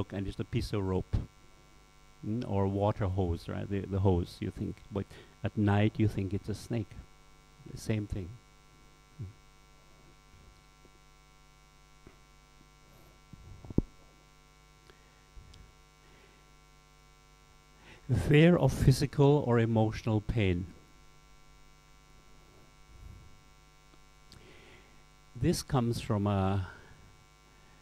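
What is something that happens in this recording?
A middle-aged man speaks with animation, in bursts with long pauses, close to a microphone.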